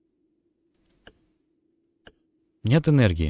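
A metal dial clicks as it turns.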